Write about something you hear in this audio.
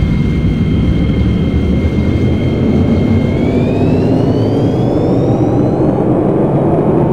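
An electric train motor whines steadily, then rises in pitch.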